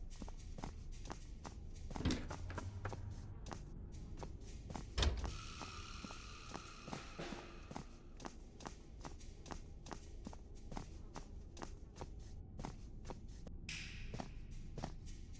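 Footsteps thud steadily across a wooden floor.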